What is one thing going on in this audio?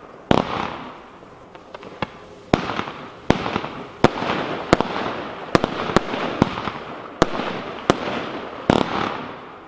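A firework battery fires shells that burst with sharp bangs.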